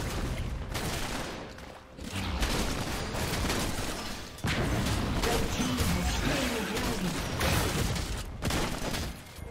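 Video game combat effects clash, zap and crackle.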